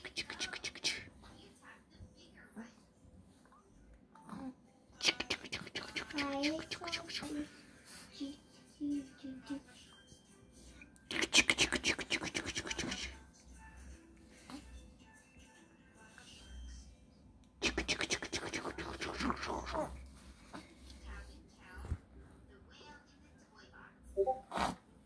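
A baby coos and babbles softly up close.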